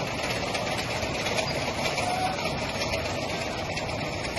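Plastic jerrycans rattle and clatter along a moving conveyor.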